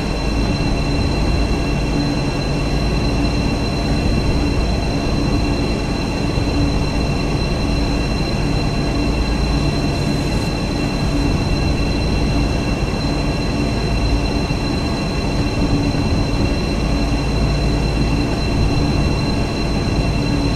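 A train engine rumbles steadily as the train rolls along the tracks.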